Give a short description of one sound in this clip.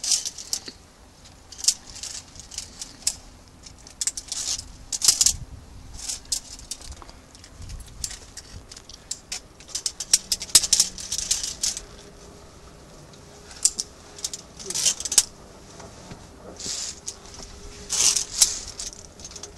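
Boots scuff and scrape on rock.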